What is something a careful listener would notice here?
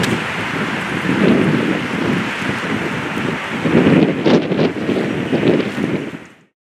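Boots march in step on pavement.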